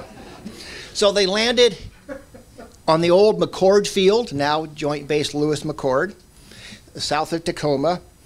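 A middle-aged man lectures calmly through a microphone.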